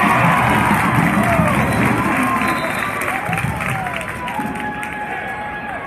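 A crowd cheers loudly in a large echoing gym, then dies down.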